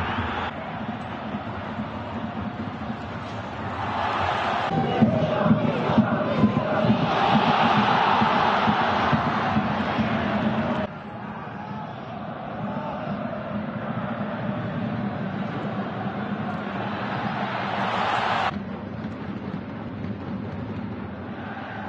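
A large crowd roars and cheers in an open stadium, swelling louder for a while before settling.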